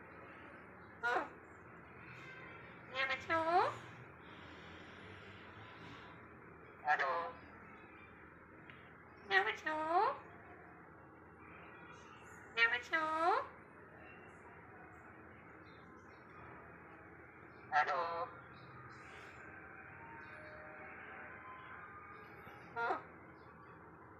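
A parrot squawks and screeches loudly up close, in short bursts.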